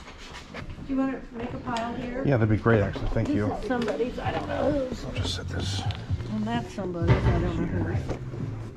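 An older man talks nearby in a conversational tone.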